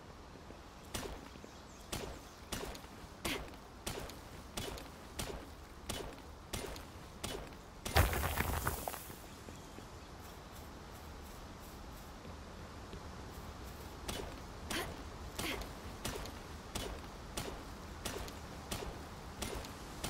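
A pickaxe strikes rock in steady, repeated blows.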